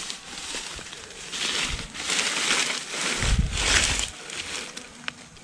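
A hand rustles through dry grass.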